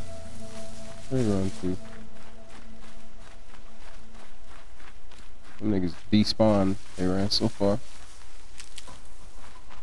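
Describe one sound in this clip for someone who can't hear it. Footsteps rustle quickly through grass and undergrowth.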